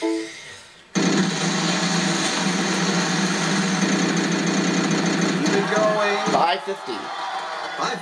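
A spinning prize wheel clicks rapidly through a television speaker.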